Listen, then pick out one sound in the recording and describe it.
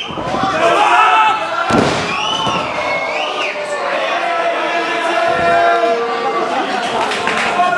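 A body slams down hard onto a wrestling mat.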